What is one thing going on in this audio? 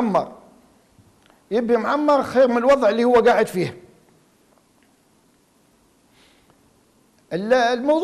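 A middle-aged man speaks clearly and calmly into a close microphone, in short bursts.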